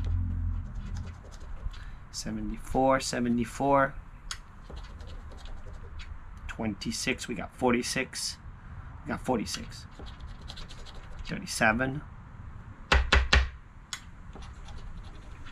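A coin scrapes across a scratch-off card.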